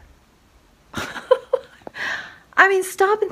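A middle-aged woman laughs.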